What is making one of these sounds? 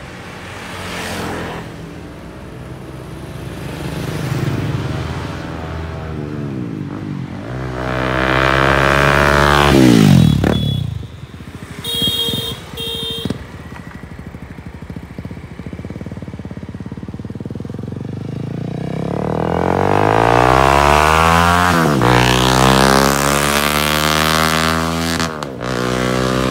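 Motorbikes ride past close by, their engines droning and fading.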